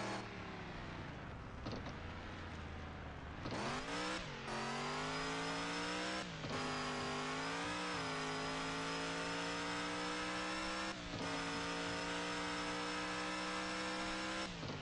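A truck engine idles, then revs hard and roars as it speeds up, dropping briefly in pitch between gear changes.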